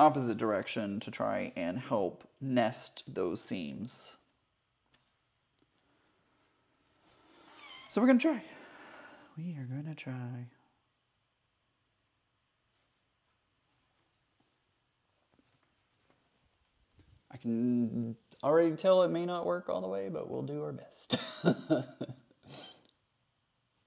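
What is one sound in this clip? A man talks calmly nearby, in short bursts with pauses.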